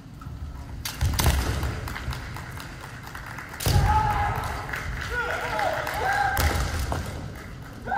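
Young male fencers shout loudly in long, drawn-out cries.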